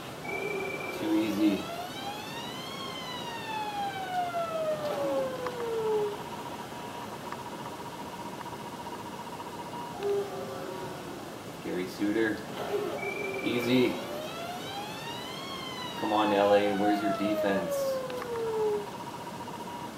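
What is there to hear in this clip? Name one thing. An electronic goal siren from a video game rises and falls in pitch.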